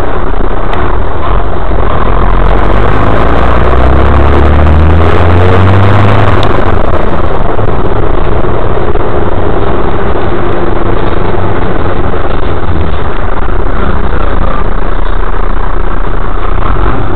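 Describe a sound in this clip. A bus engine drones and rumbles steadily from inside the cabin.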